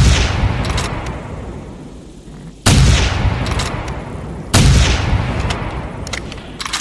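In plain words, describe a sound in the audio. A shotgun fires loud blasts that echo and slowly fade.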